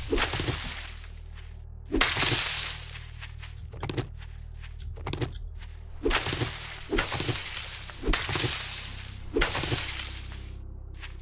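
Grass rustles in short bursts as plants are pulled up.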